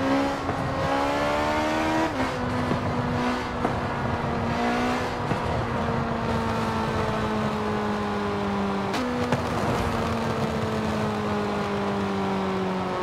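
A car engine hums at high revs, rising then slowly dropping in pitch with sudden gear shifts.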